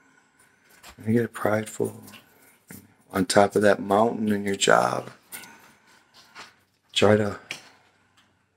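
A middle-aged man talks calmly and close to the microphone, in short bursts.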